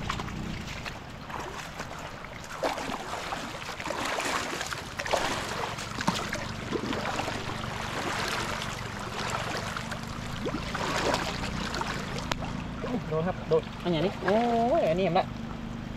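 Water splashes around legs wading through it.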